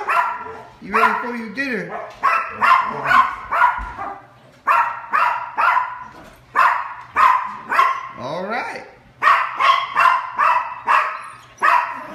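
A small dog barks sharply and repeatedly in a room.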